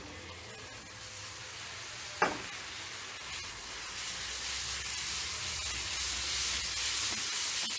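Grated coconut drops into a pan.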